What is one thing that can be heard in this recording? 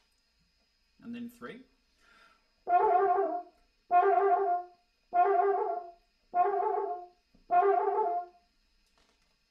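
A French horn plays a series of short, repeated notes up close.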